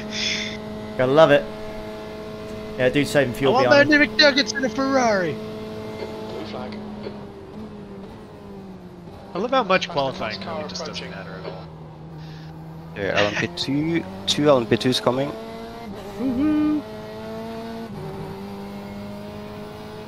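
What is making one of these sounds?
A racing car engine hums steadily and shifts pitch with gear changes.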